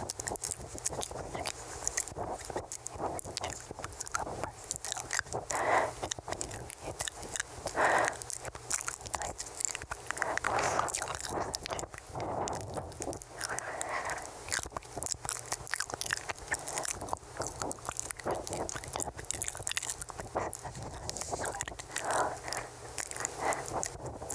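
Mouth clicks and wet mouth sounds come right at a microphone.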